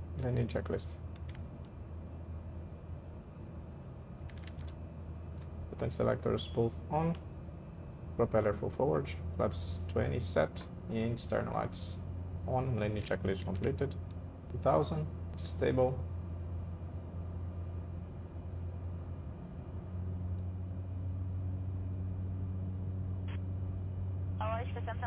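A propeller engine drones steadily in a cabin.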